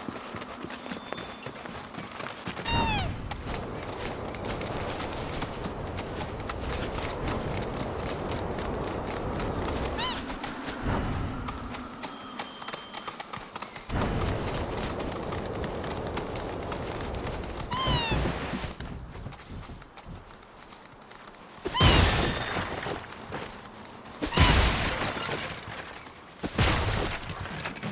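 Clawed feet patter quickly over the ground.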